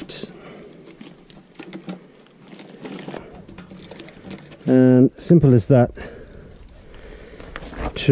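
A bicycle chain rattles and clicks as it is turned by hand.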